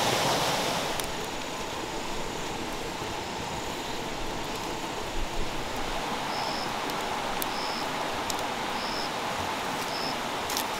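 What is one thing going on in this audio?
A river rushes steadily nearby.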